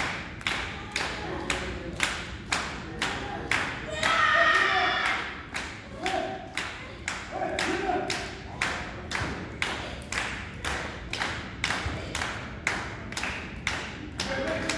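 Spectators clap in a steady rhythm.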